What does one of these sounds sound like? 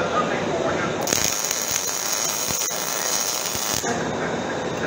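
An arc welder crackles and hisses steadily.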